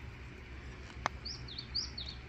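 A golf putter taps a ball with a light click.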